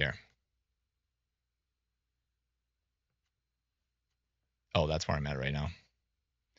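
A man speaks calmly into a microphone, in short bursts.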